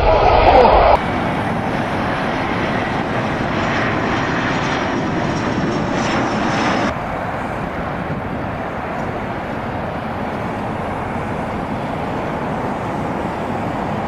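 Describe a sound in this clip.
An airliner's engines hum steadily as it comes in to land.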